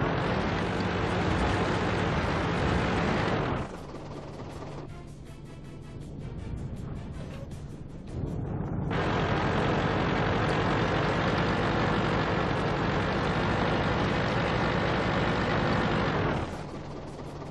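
A tank engine rumbles and roars steadily.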